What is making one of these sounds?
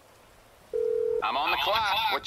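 A phone gives a short steady tone as a call connects.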